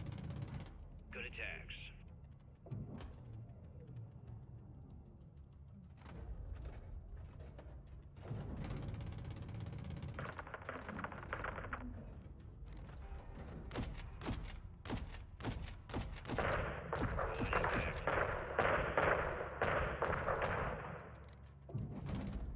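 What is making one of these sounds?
Heavy explosions boom and rumble.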